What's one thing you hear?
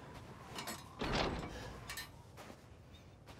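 A metal gate lock clanks as it is unlocked.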